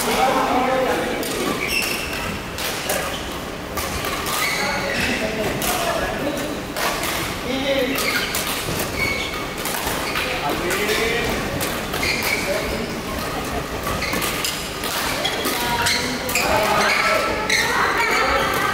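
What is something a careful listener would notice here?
Shuttlecocks are struck with sharp pops of badminton rackets, echoing in a large hall.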